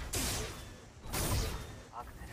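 A blade swooshes through the air with a heavy whoosh.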